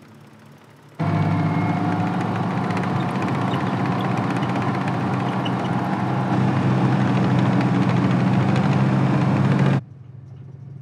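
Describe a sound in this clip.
A tank engine roars and rumbles close by.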